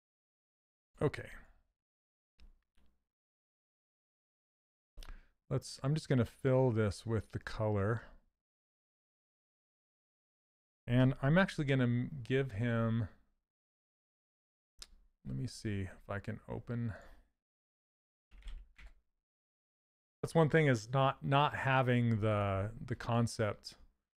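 A man talks calmly and with animation into a close microphone, with pauses.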